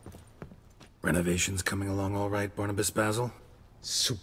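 A man speaks calmly in a low, gravelly voice.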